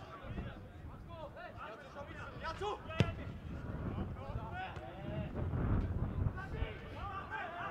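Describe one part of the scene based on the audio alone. Players shout to one another across an open field.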